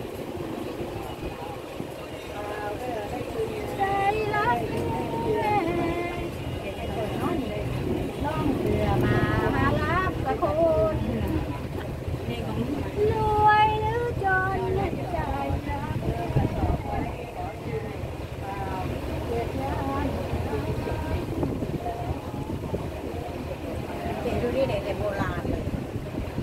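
A boat engine rumbles steadily on the water.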